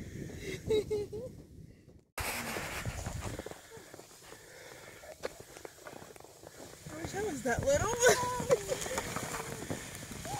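A plastic sled scrapes and hisses over snow.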